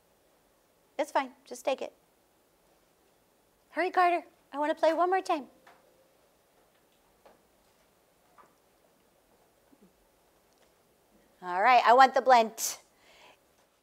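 A woman speaks clearly and slowly into a nearby microphone, pausing between phrases.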